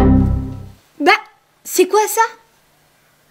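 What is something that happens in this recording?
A young girl exclaims briefly.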